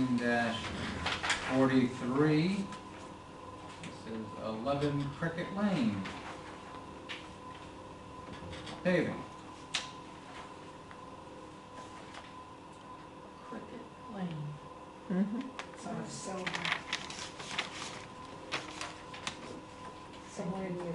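Several adults talk calmly, heard from across a quiet room.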